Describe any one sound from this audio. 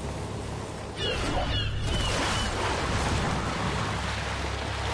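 Water rushes and sprays beneath a surfing figure.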